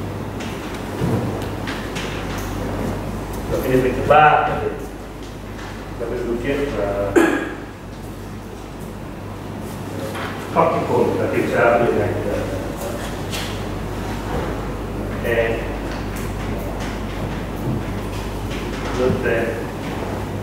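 A man lectures, speaking calmly.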